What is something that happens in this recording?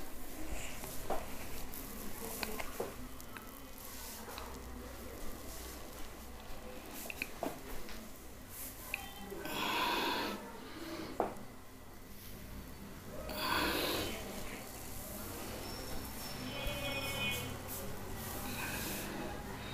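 Fingers rub and rustle through hair.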